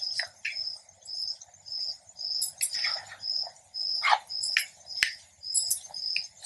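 A wire whisk beats a mixture, clinking against a ceramic bowl.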